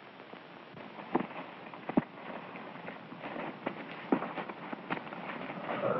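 Brush rustles and crackles as an animal moves through it.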